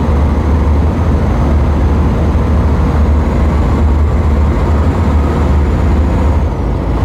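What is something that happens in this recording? A truck engine hums steadily with a deep, low rumble.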